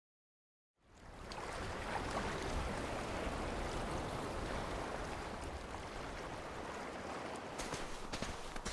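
Gentle waves lap on a shore.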